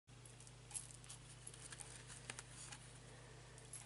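A deck of playing cards is tapped and handled softly.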